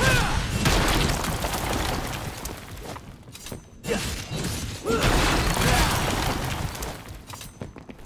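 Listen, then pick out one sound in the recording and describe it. Glass-like crystals shatter with a loud crash.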